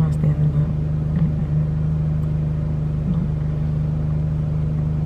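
A car engine hums steadily at idle.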